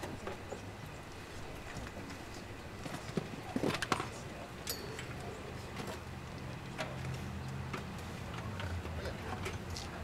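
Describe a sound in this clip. A concert band plays outdoors, heard from a distance.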